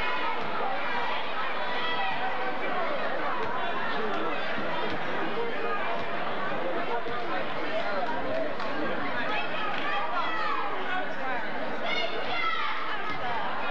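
A large crowd chatters and shouts in an echoing gym.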